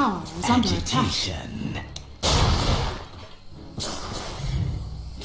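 Magic spells crackle and burst in a busy battle.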